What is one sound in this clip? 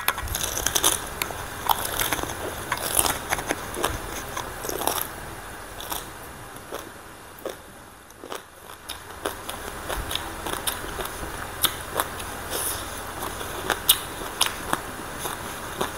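A woman chews crunchy papaya salad close to a microphone.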